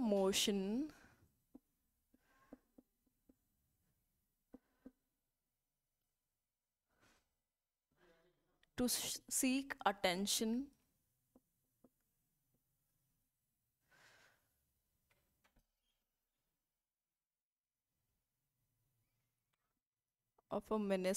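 A young woman speaks clearly into a clip-on microphone.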